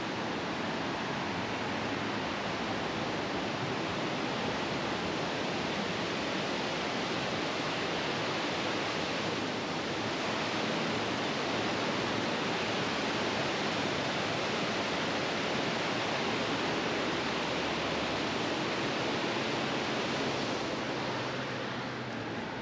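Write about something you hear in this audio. A waterfall roars steadily over a dam and rushing rapids.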